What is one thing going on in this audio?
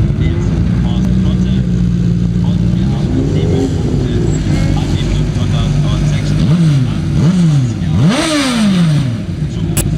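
Racing car engines idle and rumble loudly outdoors.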